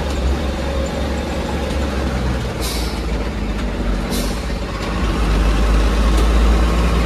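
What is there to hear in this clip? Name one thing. A heavy engine rumbles steadily and grows louder.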